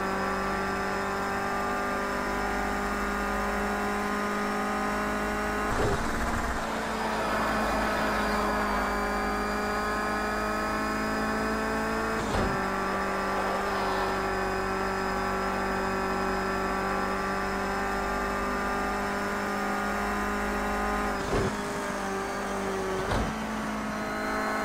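A racing car engine roars at high revs, holding a steady pitch.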